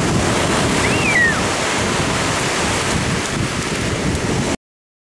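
Children's feet splash through shallow water.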